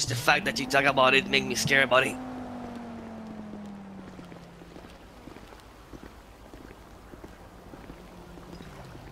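Footsteps tap steadily on concrete.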